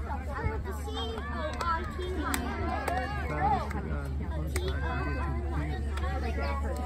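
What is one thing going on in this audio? A crowd of children and adults chatters and shouts outdoors.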